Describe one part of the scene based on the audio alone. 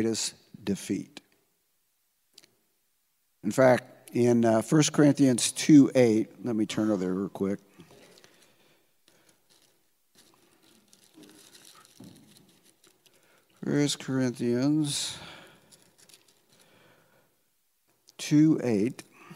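An elderly man speaks calmly through a microphone, with long pauses.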